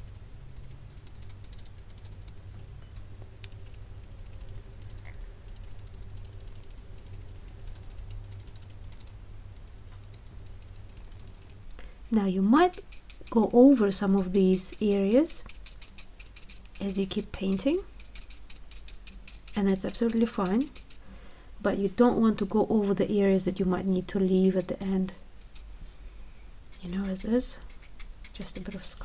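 A paintbrush softly strokes wet paper.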